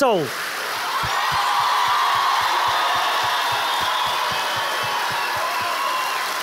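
An audience claps in quick rhythm.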